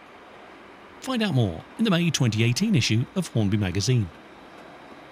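A model diesel locomotive sounds its horn in several short blasts.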